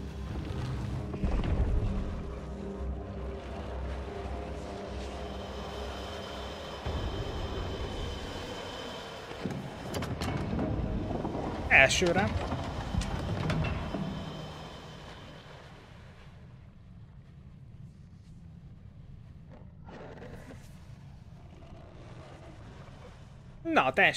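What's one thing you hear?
A deep, eerie rumble drones, then fades lower.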